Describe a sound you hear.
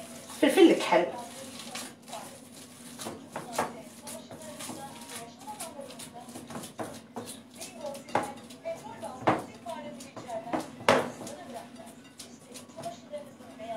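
Hands squish and knead raw minced meat in a bowl.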